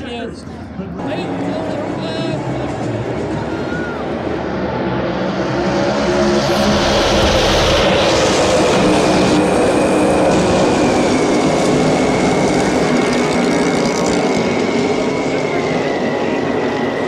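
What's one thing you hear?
Race cars roar past on the track.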